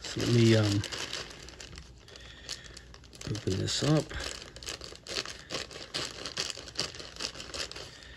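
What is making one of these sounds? Scissors snip through thin plastic.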